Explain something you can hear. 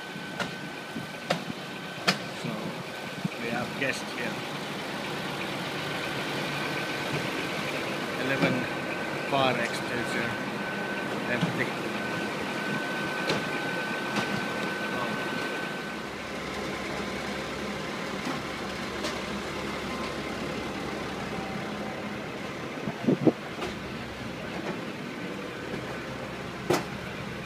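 A heavy truck engine idles steadily nearby, outdoors.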